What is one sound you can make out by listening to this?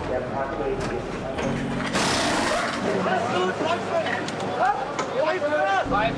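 Pneumatic wrenches whir in quick bursts.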